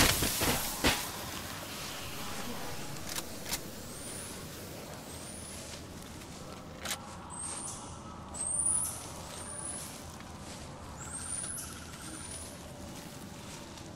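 A weapon clatters as it is picked up.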